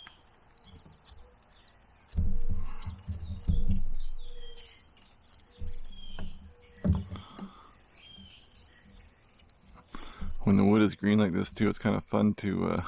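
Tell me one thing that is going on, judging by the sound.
A knife shaves and scrapes wood.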